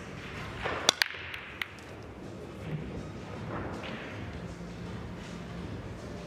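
Pool balls knock against each other and roll across the table.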